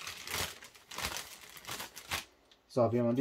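Plastic wrapping rustles and crinkles close by.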